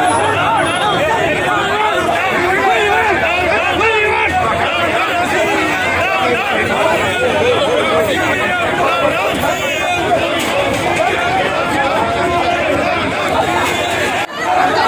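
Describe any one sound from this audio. A crowd of men shouts and argues in a loud jumble of voices outdoors.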